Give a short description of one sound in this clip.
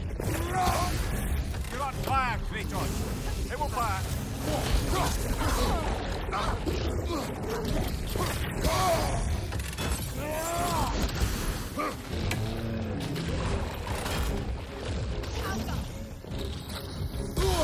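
Blows and metal clashes ring out in a fight.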